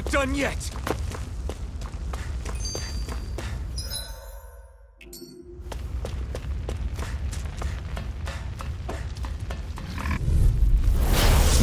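Footsteps run quickly over dirt and rock.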